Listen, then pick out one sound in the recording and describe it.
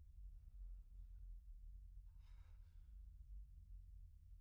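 A man speaks in a low, tired voice.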